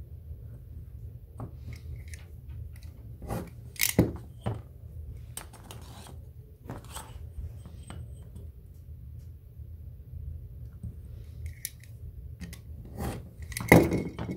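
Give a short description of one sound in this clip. A utility knife scrapes and cuts through leather.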